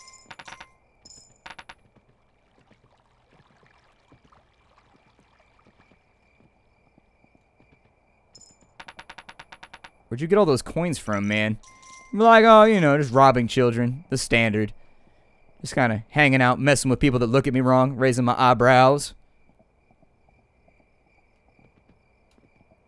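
A horse's hooves clop at a gallop.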